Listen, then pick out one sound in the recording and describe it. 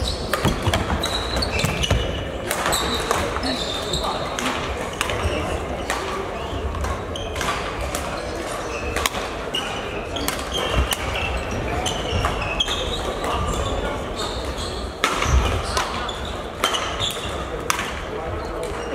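Children's voices chatter and call out across a large echoing hall.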